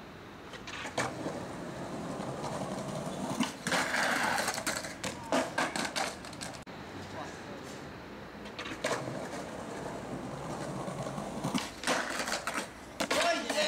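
A skateboard clacks sharply as it pops and lands.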